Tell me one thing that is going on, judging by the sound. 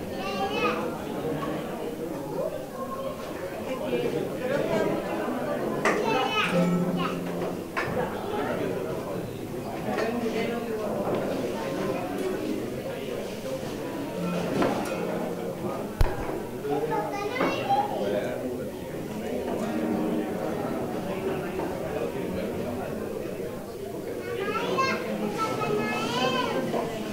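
Acoustic guitars strum.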